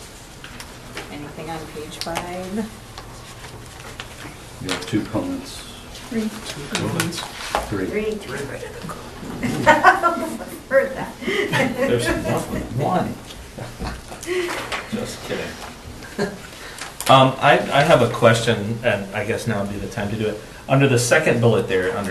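A man speaks calmly, heard through a room microphone.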